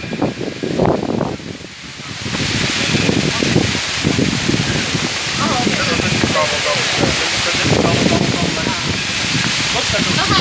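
A middle-aged man talks close to the microphone.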